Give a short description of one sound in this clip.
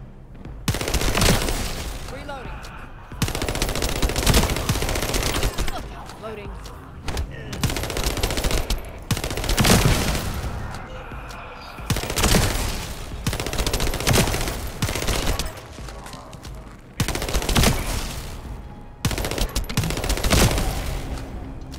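Guns fire in loud rapid bursts, with short pauses between them.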